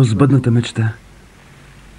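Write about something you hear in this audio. A boy speaks calmly nearby.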